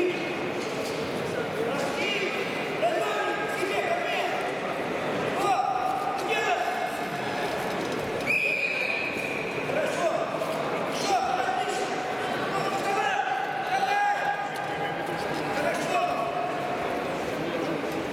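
Wrestlers' feet shuffle and thud on a mat.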